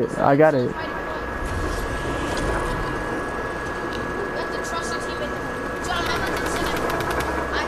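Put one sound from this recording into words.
A zipline whirs as a rider slides along the cable.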